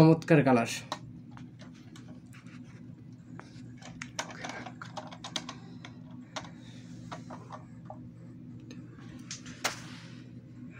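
A plastic toy clicks and taps softly as it is handled.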